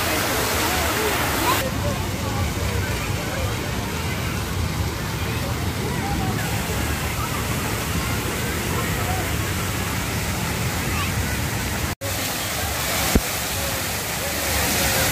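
A crowd of people chatters in the distance.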